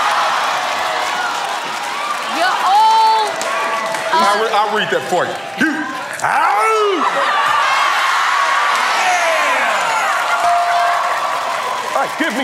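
A studio audience cheers and claps loudly.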